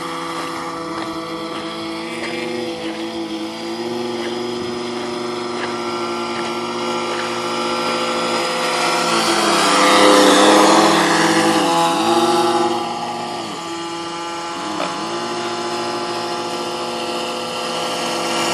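A small model hovercraft's electric fan whines steadily, its pitch dipping and rising, and grows loud as it passes close by.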